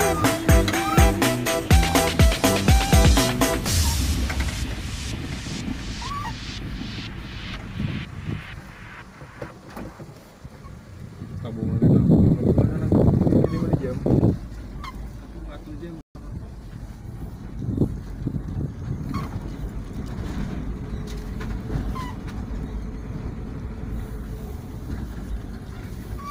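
Tyres rumble over a rough dirt road.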